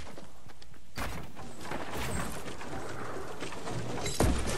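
Wooden walls and ramps clatter into place as they are built.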